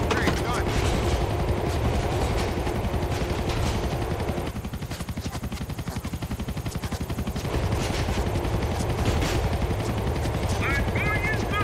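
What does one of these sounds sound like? A subway train rumbles along elevated steel tracks.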